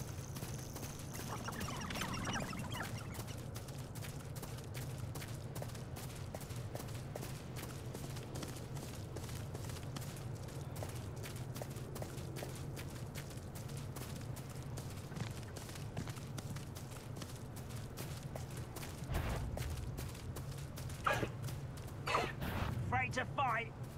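Hooves clop steadily on a dirt path.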